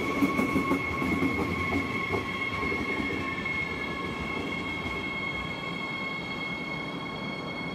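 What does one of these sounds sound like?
An electric train hums with a steady high whine.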